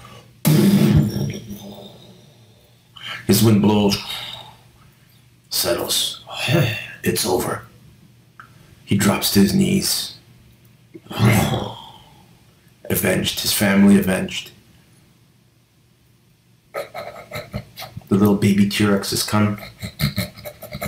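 A man speaks in a deep, grave voice, close by.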